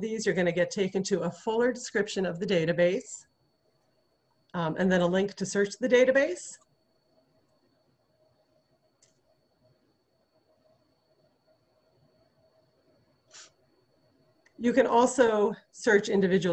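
A woman speaks calmly and closely into a microphone, with pauses.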